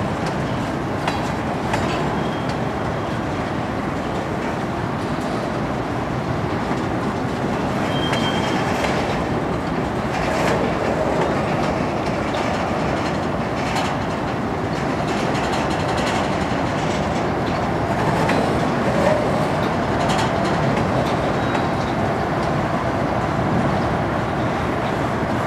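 Steel wheels clack and squeal over the rail joints.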